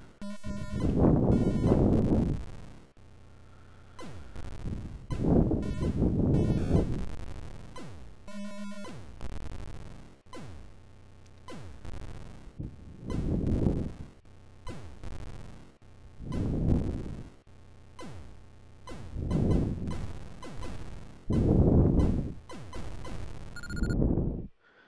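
Blocky electronic explosions rumble in loud, noisy bursts again and again.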